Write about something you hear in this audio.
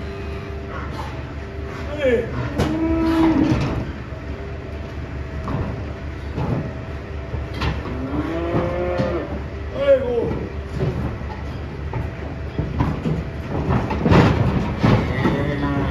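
Hooves clatter and thud on a metal ramp.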